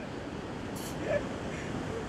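A shovel scrapes into sand.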